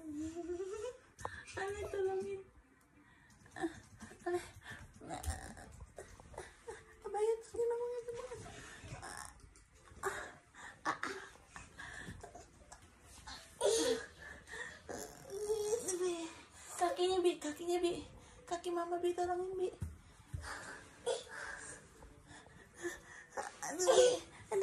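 A young child laughs and giggles close by.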